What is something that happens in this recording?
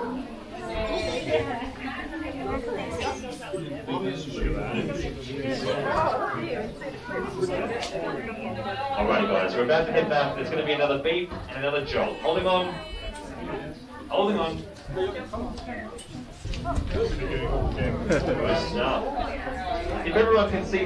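Several people talk and chatter nearby in a crowded cabin.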